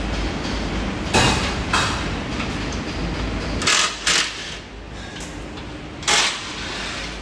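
Metal parts clank and knock sharply.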